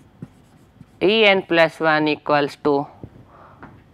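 A man speaks clearly and with emphasis, close by.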